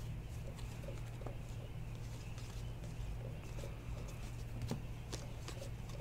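Trading cards rustle and flick as hands shuffle through them.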